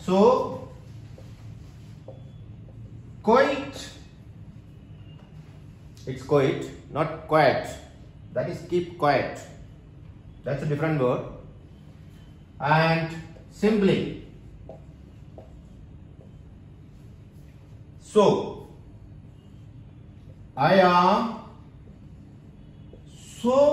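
A middle-aged man speaks calmly and slowly, close by, with pauses.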